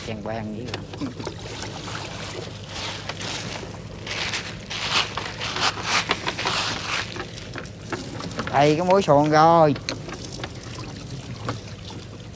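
Water splashes as a wet net is hauled from the water.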